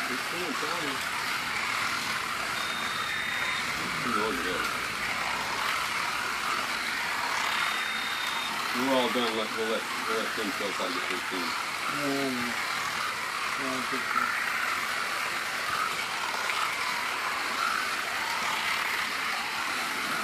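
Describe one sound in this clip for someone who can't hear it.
Small electric slot cars whir steadily around a track.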